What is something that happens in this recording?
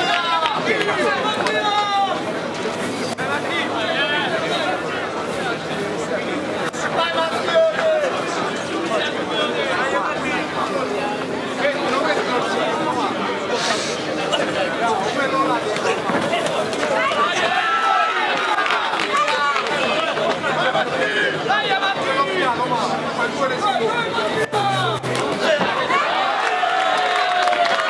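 A large crowd chatters and cheers throughout.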